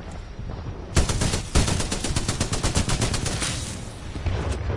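Gunfire rattles in rapid bursts, loud and close.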